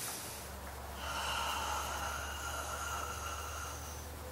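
A young man sings a long, steady high note.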